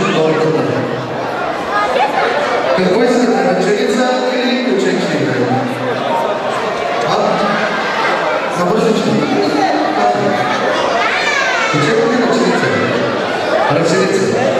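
A crowd of guests chatters loudly in a large room.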